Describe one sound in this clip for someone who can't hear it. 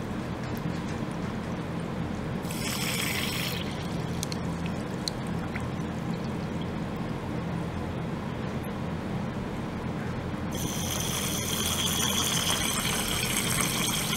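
Water bubbles and fizzes in a bath.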